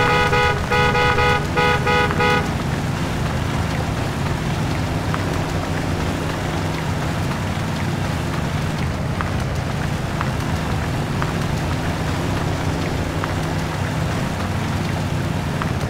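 Tyres squelch through mud.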